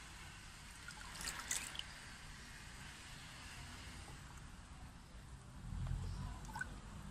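Water sloshes and splashes gently as a plastic tub is tipped into a pond.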